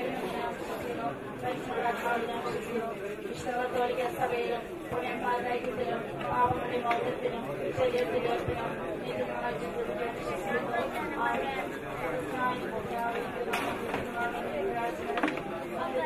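A crowd of people murmur and talk in the background.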